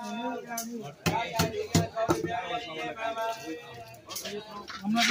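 A knife chops and scrapes at fish with sharp knocks.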